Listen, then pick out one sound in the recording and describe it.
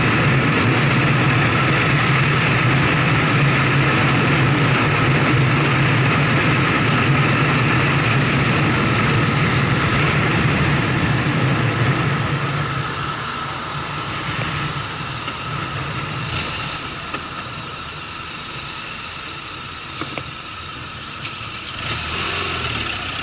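Wind rushes loudly past the rider, then eases.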